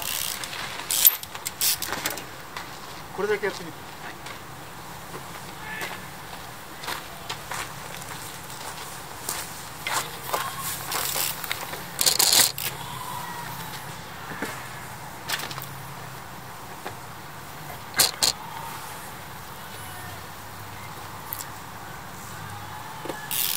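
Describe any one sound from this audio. A bicycle's tyres thump and clatter as it hops on concrete.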